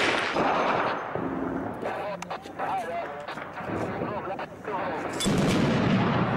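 A heavy machine gun fires in short bursts nearby.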